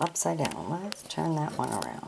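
A fingertip brushes softly over paper stamps.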